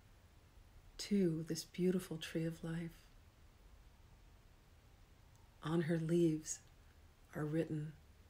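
A middle-aged woman speaks calmly in slow phrases with pauses, close to the microphone.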